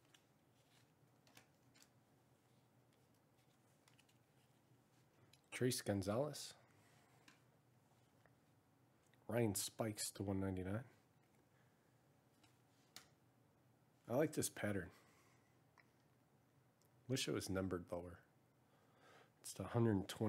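Trading cards slide and flick against each other in a pair of hands.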